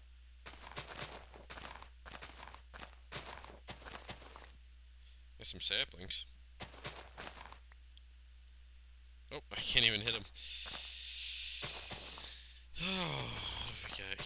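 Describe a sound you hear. Grass rustles and crunches in short bursts as it is torn up.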